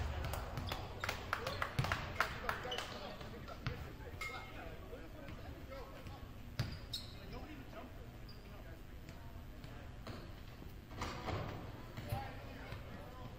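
Basketballs bounce on a hardwood floor, echoing in a large hall.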